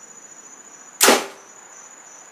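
A bowstring snaps sharply as an arrow is released.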